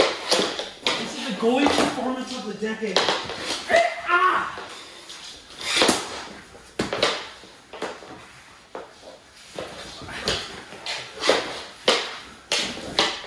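Hockey sticks slap and clatter on a hard floor.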